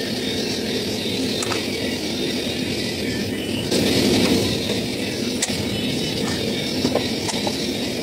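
Metal tools clink against an engine.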